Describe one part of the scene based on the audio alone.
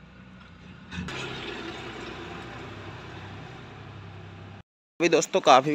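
A truck engine idles nearby.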